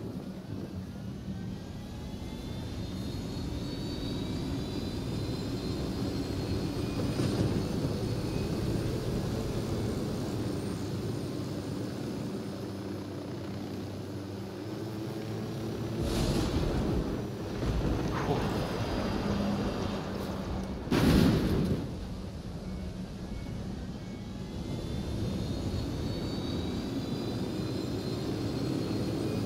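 A helicopter's rotor thumps as it flies low.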